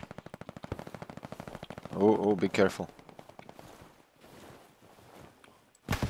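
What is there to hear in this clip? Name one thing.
A rifle bolt clicks and clacks as it is worked.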